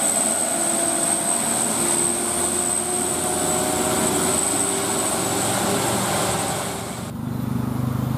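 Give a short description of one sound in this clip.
A truck's diesel engine rumbles loudly as it drives past.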